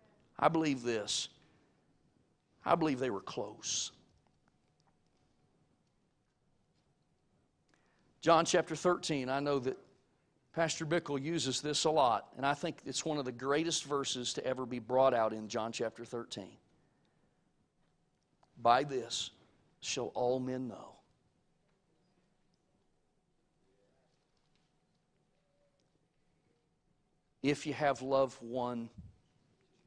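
A middle-aged man speaks with emphasis through a microphone, in bursts with long pauses.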